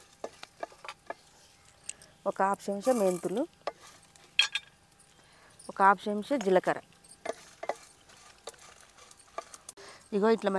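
Dry chillies and seeds rattle in a metal pan.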